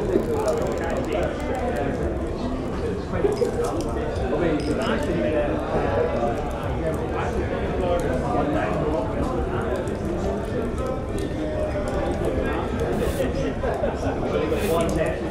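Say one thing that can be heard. A crowd of men and women chatter in a busy room.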